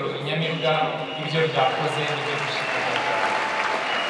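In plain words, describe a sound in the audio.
A choir sings through loudspeakers in a large hall.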